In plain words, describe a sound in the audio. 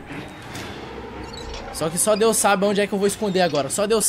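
A heavy metal valve wheel creaks as it turns.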